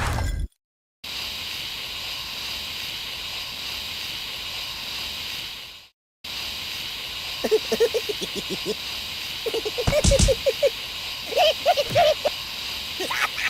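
Gas hisses steadily from two nozzles.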